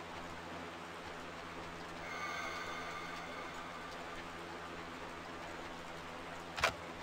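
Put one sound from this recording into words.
Footsteps tread steadily over the ground.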